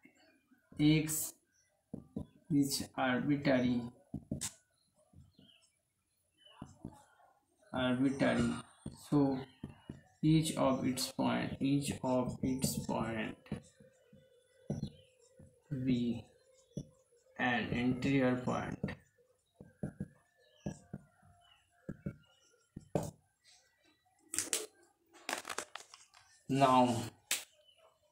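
A man speaks calmly and steadily close by, explaining.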